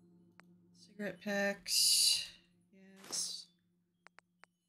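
A woman speaks with animation into a nearby microphone.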